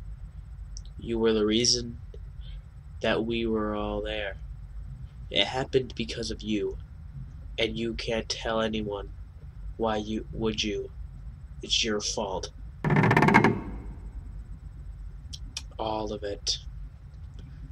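A young man speaks slowly and quietly through a microphone.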